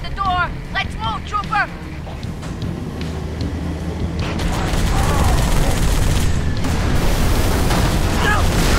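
A heavy vehicle engine rumbles low and steadily.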